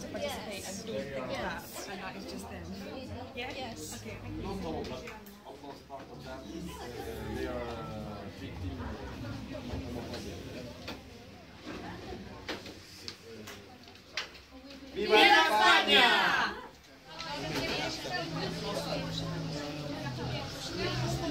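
Several people chatter in the room.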